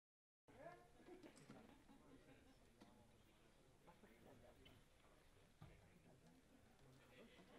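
A drummer strikes the drums.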